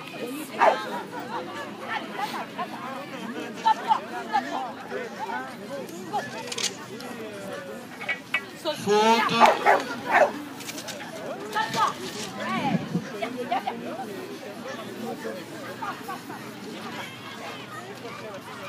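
A crowd murmurs outdoors in the distance.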